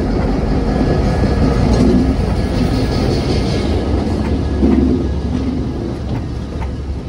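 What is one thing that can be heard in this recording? A diesel locomotive rumbles past close by, loud and then fading.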